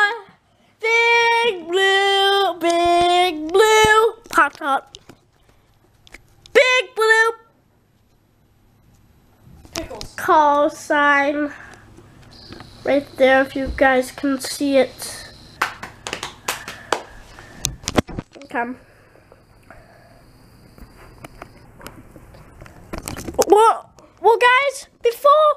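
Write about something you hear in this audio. A young boy sings and talks loudly, close to the microphone.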